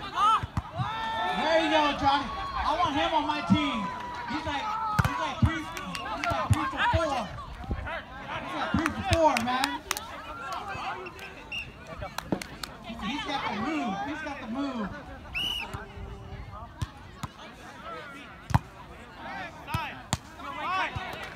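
Several young men shout and call out to each other outdoors.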